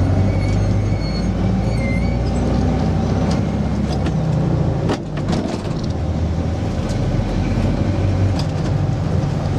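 Loose parts of a bus rattle and clatter.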